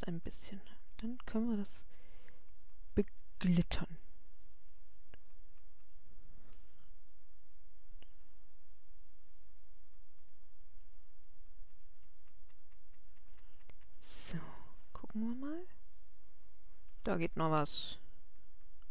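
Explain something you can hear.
A brush softly rubs and dabs on paper.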